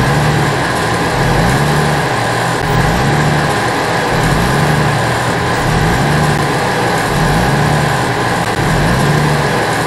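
A vehicle engine rumbles and revs up again and again.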